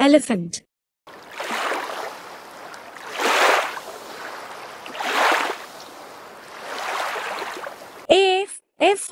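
Water splashes loudly as an elephant plays in a pool.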